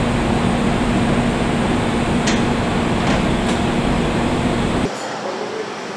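A machine hums loudly and steadily.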